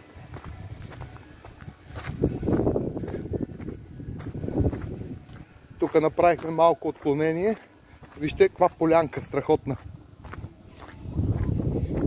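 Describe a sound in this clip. Footsteps crunch on gravel close by.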